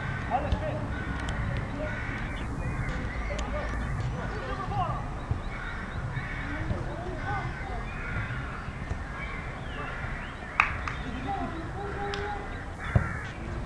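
Men shout to each other at a distance.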